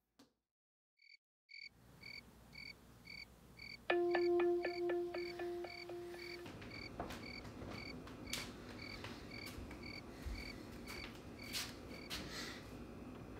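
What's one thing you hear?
A phone alarm beeps in a steady repeating pattern.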